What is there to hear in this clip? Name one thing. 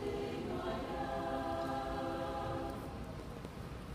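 A mixed choir sings a sustained chord in a large echoing hall.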